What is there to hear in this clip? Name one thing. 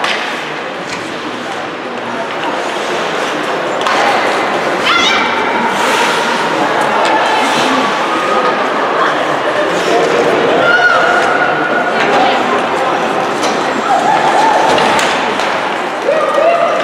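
A crowd of spectators cheers and shouts in a large echoing rink.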